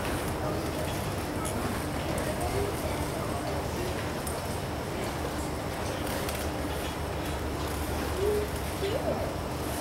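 A man speaks through a microphone over loudspeakers.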